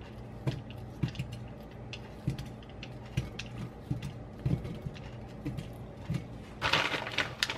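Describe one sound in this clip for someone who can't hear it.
A knife slices through sausage with soft repeated taps.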